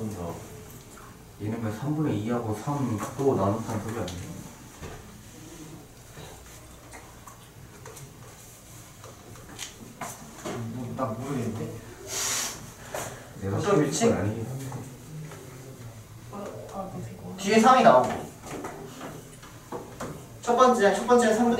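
A young man lectures calmly, close to a microphone.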